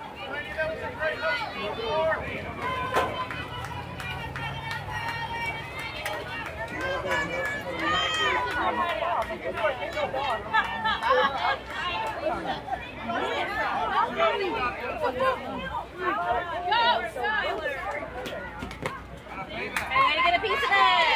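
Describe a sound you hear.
Young girls shout and cheer across an open outdoor field.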